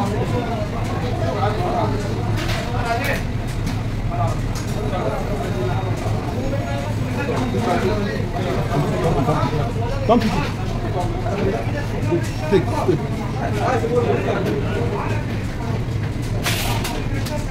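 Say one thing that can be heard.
Children and adults chatter nearby.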